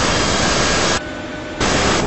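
Jet engines roar steadily as an airliner flies past.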